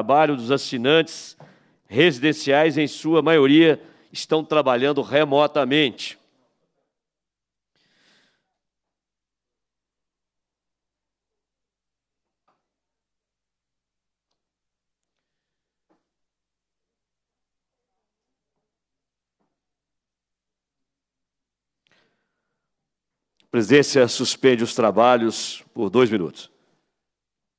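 A man speaks calmly over a microphone in a large room.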